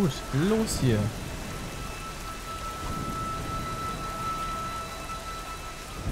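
Waves crash against rocks in the distance.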